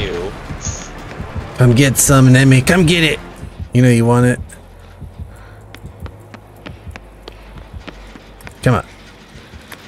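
Quick footsteps run across a hard floor and up stairs.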